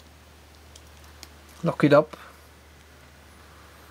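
A key slides into a lock with faint metallic scraping.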